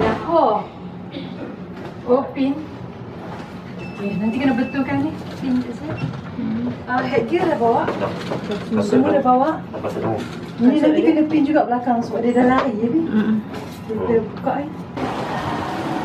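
Women talk and laugh close by.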